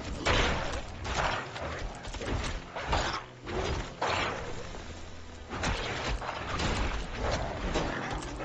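Monsters screech and growl in a game.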